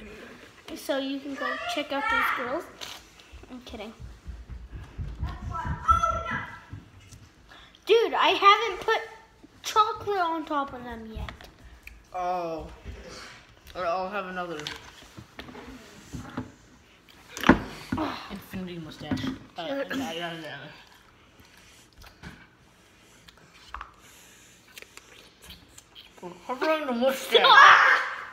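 Young boys talk and laugh close by with animation.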